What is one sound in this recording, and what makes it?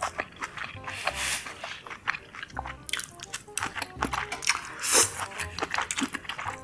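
A young woman slurps greens noisily, close to a microphone.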